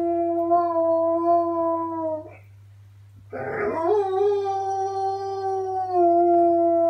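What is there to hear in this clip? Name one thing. A dog howls in long, drawn-out notes, close by.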